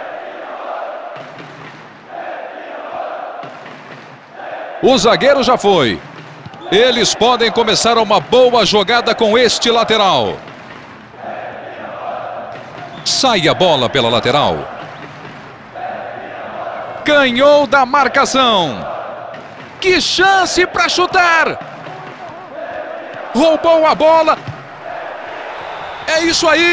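A large stadium crowd murmurs and roars steadily in the background.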